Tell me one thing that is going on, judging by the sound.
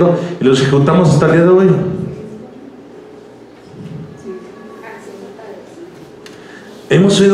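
A man preaches loudly and with passion into a microphone, his voice echoing in a large room.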